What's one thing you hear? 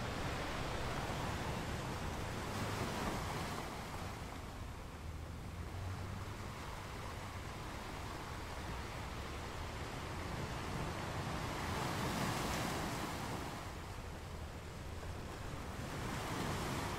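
Water rushes and hisses over rocks.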